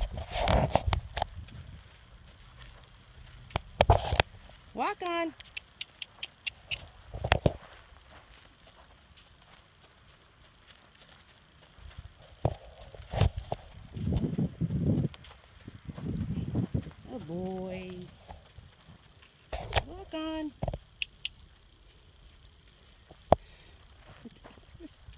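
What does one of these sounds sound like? A horse's hooves thud softly on sand as it walks.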